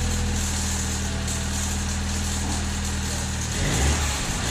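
A car engine idles with a steady hum close by.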